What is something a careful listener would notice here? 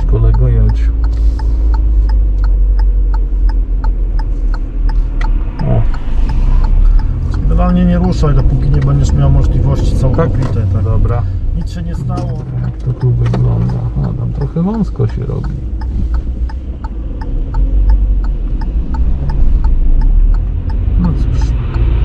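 A car engine hums steadily with low road rumble from inside the car.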